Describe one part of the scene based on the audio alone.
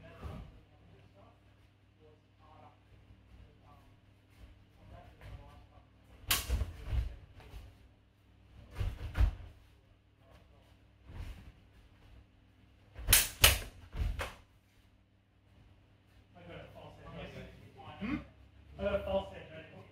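Footsteps thud and shuffle on a padded floor.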